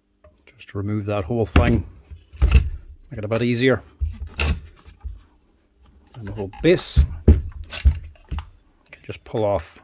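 Metal parts clink and rattle as a power tool is taken apart.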